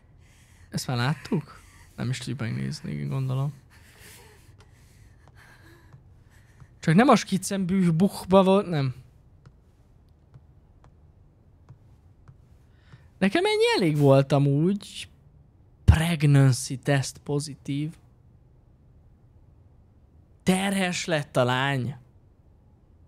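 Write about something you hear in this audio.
A young man talks with animation through a close microphone, in bursts with pauses.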